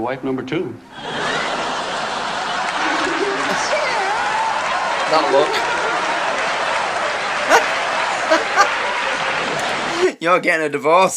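A crowd laughs loudly.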